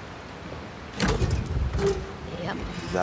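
A heavy metal safe door unlatches and creaks open.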